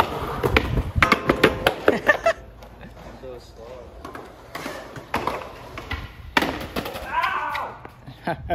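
A skateboard deck smacks and clacks on concrete.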